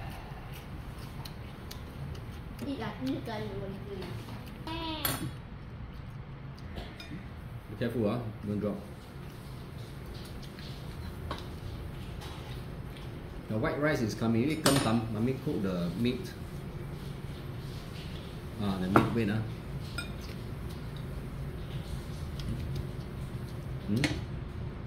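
Cutlery clinks against plates and bowls.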